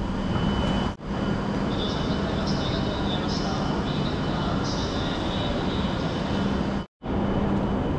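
Footsteps walk along a station platform.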